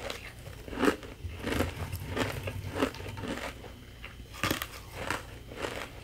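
Shaved ice crunches and crackles under fingers close up.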